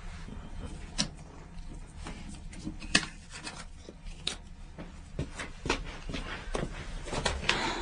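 Playing cards click and snap in a man's hands.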